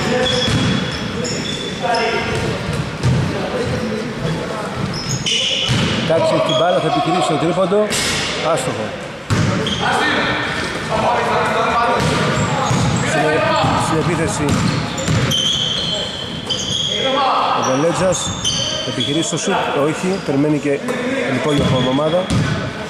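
Men shout and call out across a large echoing gym.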